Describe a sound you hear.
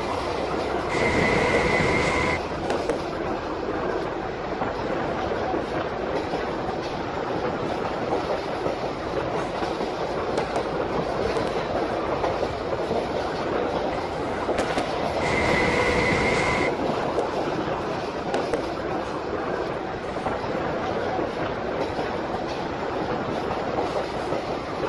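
A train engine hums and rumbles steadily as the train runs along the track.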